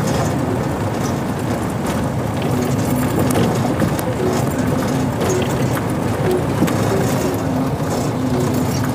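A car engine idles nearby.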